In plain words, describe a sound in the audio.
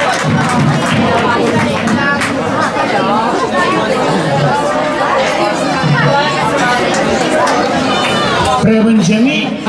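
Many children chatter and call out outdoors.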